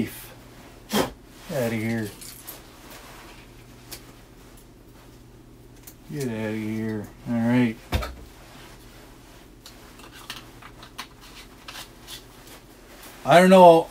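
Small plastic parts click and rattle as a man handles them.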